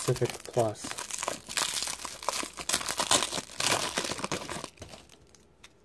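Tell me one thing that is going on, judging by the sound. A foil wrapper crinkles and tears as hands open it.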